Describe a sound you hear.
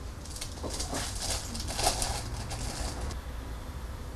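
Plastic packaging crinkles.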